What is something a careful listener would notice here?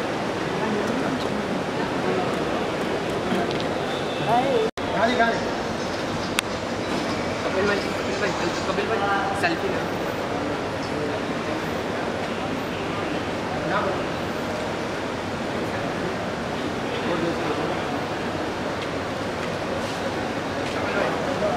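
A busy indoor crowd murmurs and chatters in a large echoing hall.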